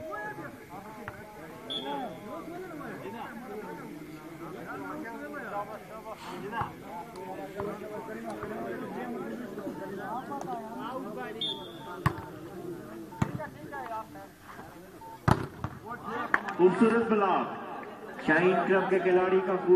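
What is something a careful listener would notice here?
A crowd of men chatters and calls out outdoors.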